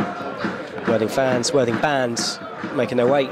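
A crowd of football fans chants and cheers outdoors.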